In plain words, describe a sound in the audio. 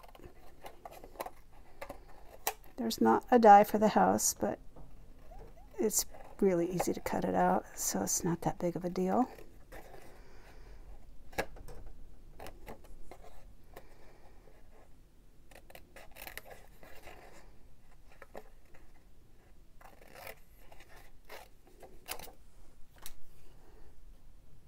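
Scissors snip through card with short crisp clicks.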